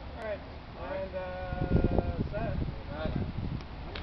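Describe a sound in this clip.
A man talks briefly nearby, outdoors.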